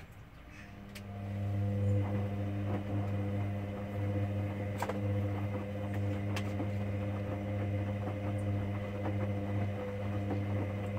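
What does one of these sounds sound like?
Laundry thumps and rustles inside a turning washing machine drum.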